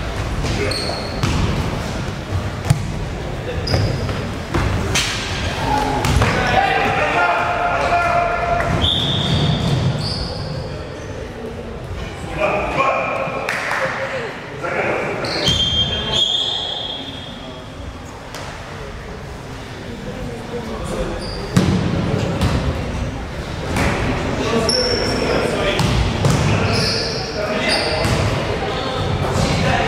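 A crowd of young spectators chatters and cheers in an echoing hall.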